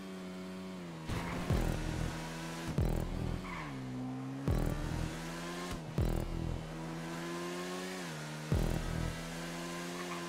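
A motorcycle engine gives short loud bursts and thumps.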